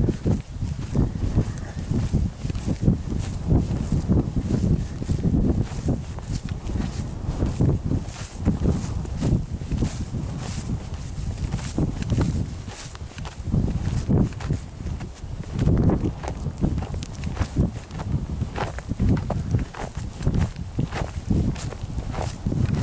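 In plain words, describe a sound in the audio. Wind buffets loudly outdoors in gusts.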